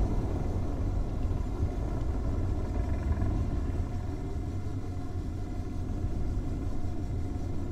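A vehicle's engine rumbles low and steady.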